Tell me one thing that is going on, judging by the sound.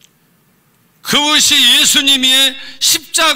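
An elderly man speaks with animation through a microphone.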